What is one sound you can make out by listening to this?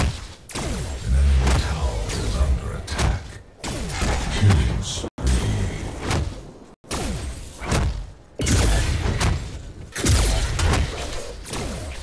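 Deep booming blasts rumble.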